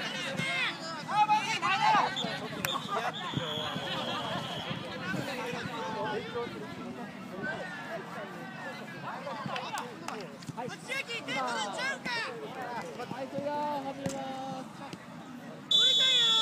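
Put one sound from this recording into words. A football is kicked with dull thuds.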